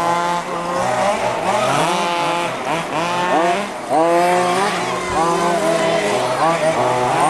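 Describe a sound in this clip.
A nitro-powered radio-controlled car revs up and down.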